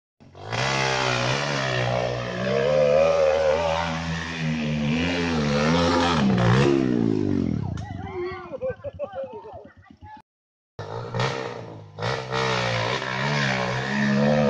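A dirt bike engine revs hard and strains uphill.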